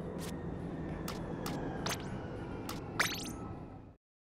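Menu selections click.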